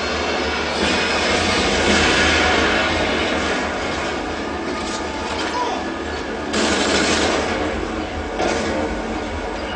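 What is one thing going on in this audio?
Gunfire from a video game plays loudly through a loudspeaker.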